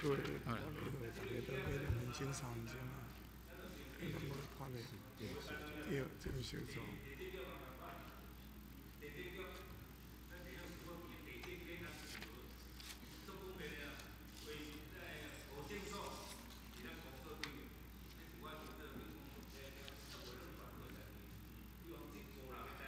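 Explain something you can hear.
An elderly man speaks forcefully into a microphone, heard through a loudspeaker in a large room.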